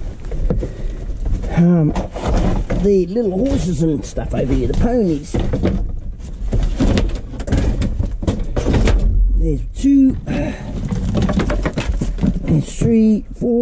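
Wooden boards knock and scrape against each other.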